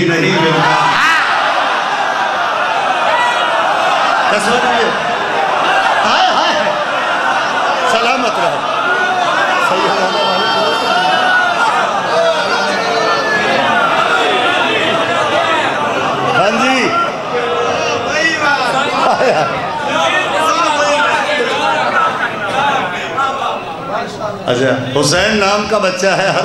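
A young man sings loudly and passionately into a microphone, heard through loudspeakers.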